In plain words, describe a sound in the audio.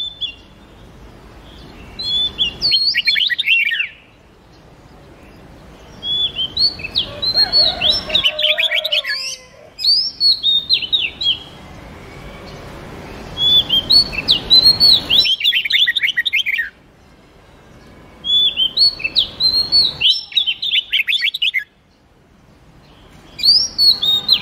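A songbird sings loud bursts of quick, rising and falling whistles and chirps.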